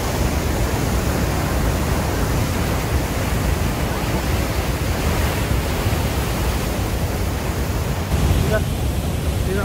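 A rushing river roars loudly over rapids nearby.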